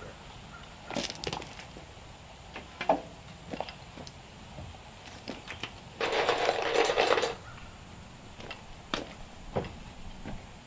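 Boards knock and thump against wooden steps.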